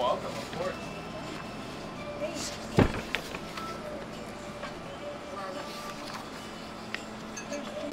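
Paper pages rustle as a menu is handled.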